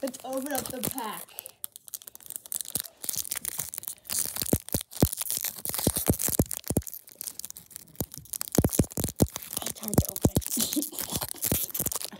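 A foil card pack crinkles and rustles as hands tear it open.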